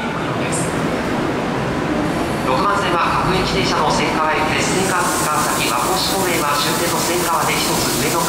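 A crowd murmurs and shuffles while boarding a train.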